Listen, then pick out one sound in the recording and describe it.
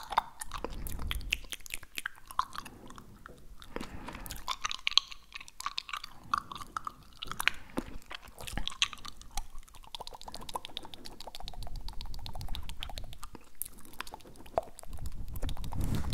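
A young man whispers softly, very close to a microphone.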